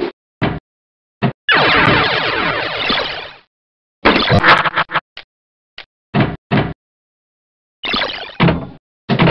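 Electronic pinball sound effects chime and blip in short bursts as the ball hits bumpers.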